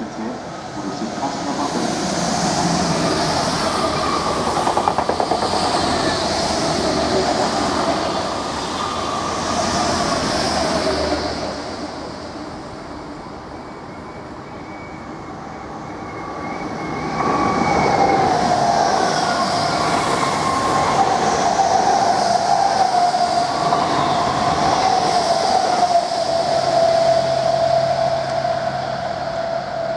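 A passing train rumbles and clatters loudly on the rails close by.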